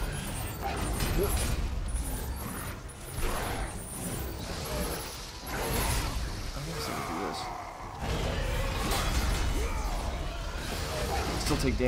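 Blades slash and strike in a fast fight.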